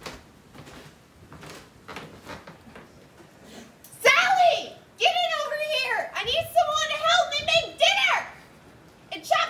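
Footsteps tread down wooden stairs.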